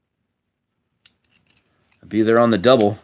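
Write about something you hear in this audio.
Plastic toy parts click softly as they are twisted into place.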